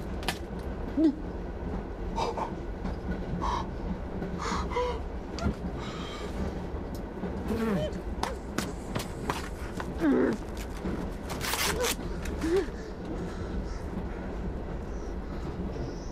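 A middle-aged man speaks agitatedly, close by.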